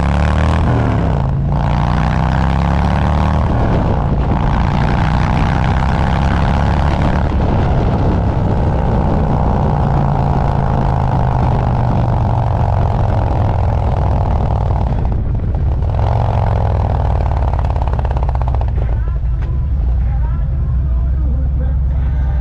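A motorcycle engine rumbles loudly and steadily close by.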